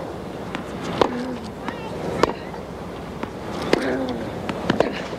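Tennis balls are struck back and forth with sharp pops of rackets.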